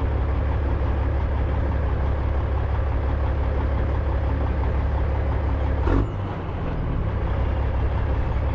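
A small vehicle engine rumbles steadily close by.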